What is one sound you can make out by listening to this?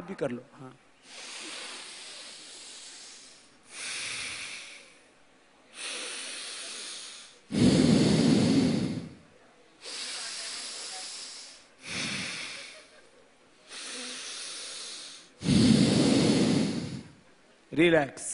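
A large audience laughs in repeated bursts.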